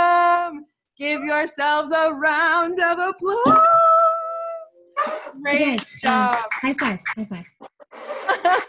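A woman sings loudly over an online call.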